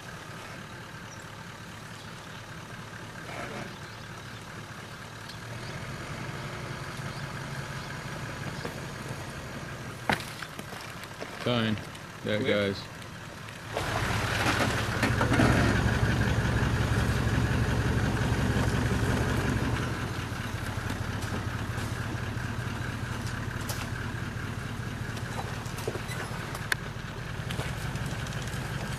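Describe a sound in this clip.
An off-road vehicle's engine rumbles and revs as it climbs.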